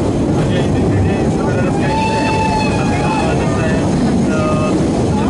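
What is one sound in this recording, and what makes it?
A narrow-gauge train rumbles as it rolls along the rails.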